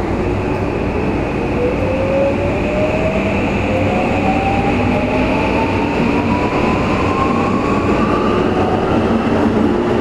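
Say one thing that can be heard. A train's electric motor hums and whines, rising steadily in pitch as it speeds up.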